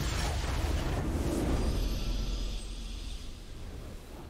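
A triumphant victory fanfare swells and rings out.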